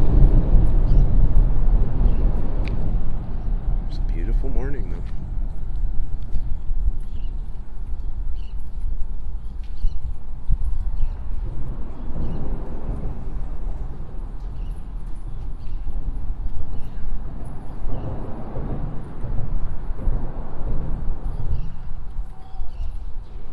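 Water laps gently against a concrete edge.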